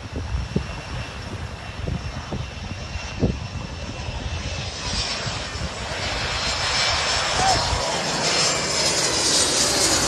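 A propeller plane roars low overhead, growing louder as it passes.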